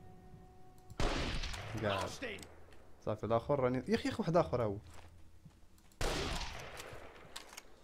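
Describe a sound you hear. A rifle shot booms and echoes.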